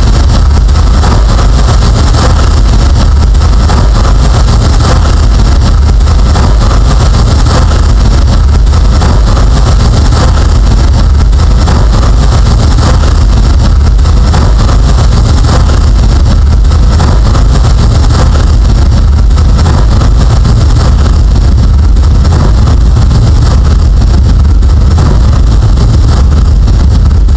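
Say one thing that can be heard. Harsh electronic noise roars, loud and distorted, without a break.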